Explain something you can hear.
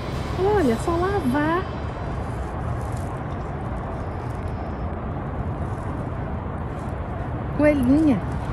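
A young woman speaks in a lively, sing-song voice close by.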